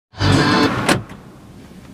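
A push button clicks.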